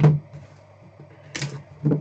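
A blade slits the tape on a cardboard box.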